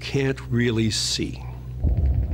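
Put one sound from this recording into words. A man speaks with animation, close to the microphone.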